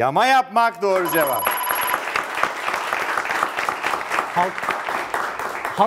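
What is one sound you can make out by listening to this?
A small audience claps and cheers.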